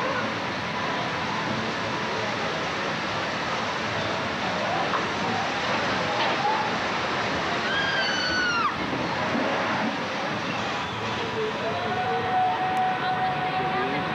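A group of people on a ride cry out and cheer.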